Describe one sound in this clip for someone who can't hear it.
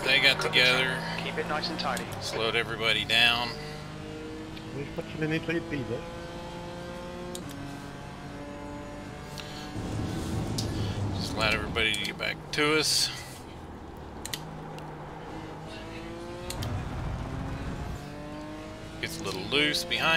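A racing car engine drones and rises in pitch as it revs through the gears.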